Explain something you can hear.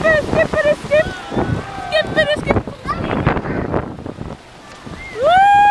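A young woman laughs and talks excitedly close by.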